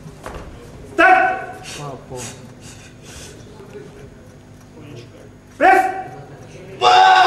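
A man shouts loud commands nearby in an echoing hall.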